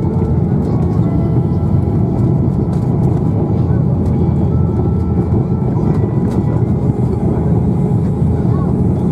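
Jet engines roar loudly as an airliner rolls fast down a runway.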